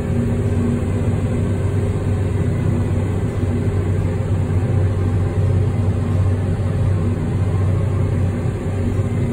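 Harvester machinery rattles and whirs as it gathers the crop.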